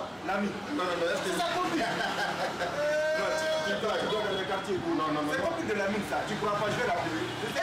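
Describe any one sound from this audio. Men talk and laugh close by.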